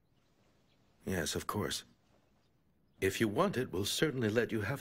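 A man speaks in a low, serious voice, close by.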